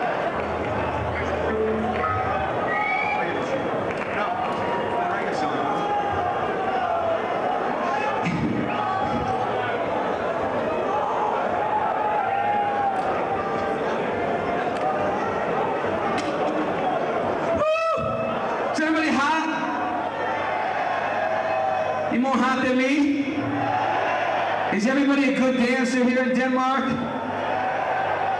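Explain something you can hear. A rock band plays loud live music through loudspeakers.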